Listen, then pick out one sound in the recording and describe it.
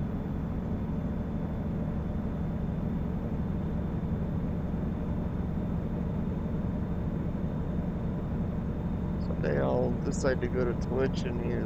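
A truck engine hums steadily while driving along a road.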